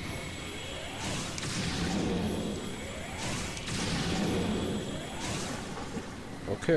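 A game creature hisses and roars in bursts.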